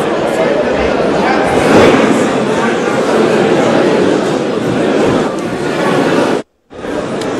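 A man speaks forcefully into a microphone, heard over loudspeakers in a large echoing hall.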